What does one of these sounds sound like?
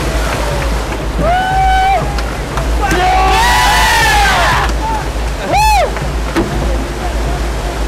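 A group of people cheers and shouts outdoors.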